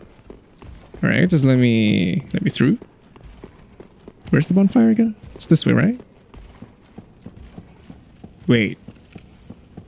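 A young man talks with animation, close into a microphone.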